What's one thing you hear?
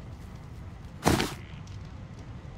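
A paper envelope flap rustles open.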